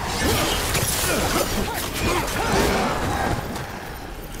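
Blades clash with sharp metallic hits.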